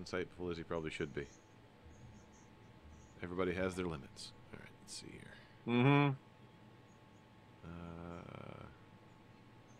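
A man talks with animation into a close microphone, heard over an online call.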